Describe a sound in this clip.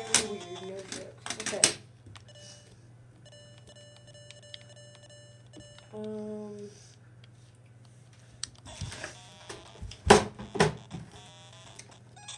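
A handheld game console plays short electronic beeps and tones.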